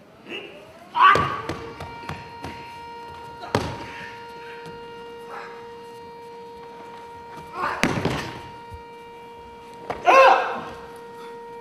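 A man lets out sharp, loud shouts.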